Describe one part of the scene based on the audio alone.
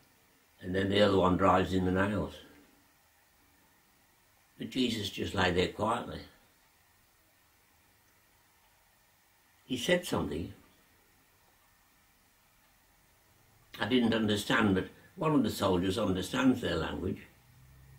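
An elderly man speaks slowly and calmly close by, in short bursts with pauses.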